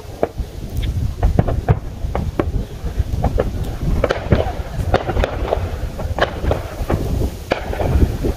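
Fireworks bang and crackle in the distance.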